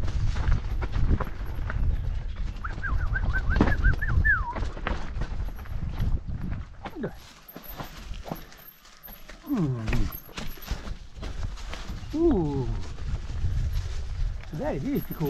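A bicycle rattles and clanks over bumps.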